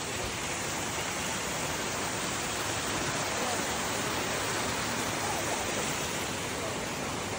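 A small waterfall splashes over rocks into a creek.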